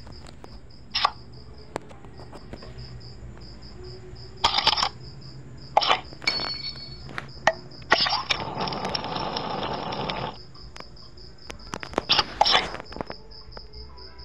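Playing cards snap down with short clicks.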